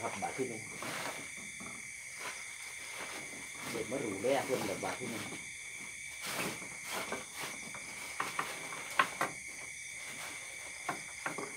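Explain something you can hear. Objects rustle and knock softly on a floor nearby.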